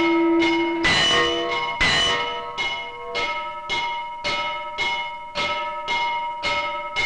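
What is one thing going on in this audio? A bell rings out again and again, each stroke ringing on and fading.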